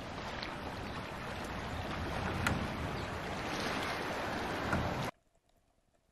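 Gentle sea waves wash steadily outdoors.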